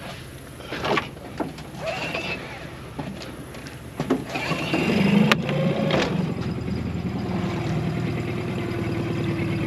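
Water laps against a boat hull.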